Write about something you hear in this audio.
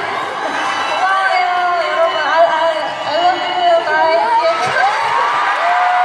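A young woman speaks with animation through a microphone over loudspeakers in a large hall.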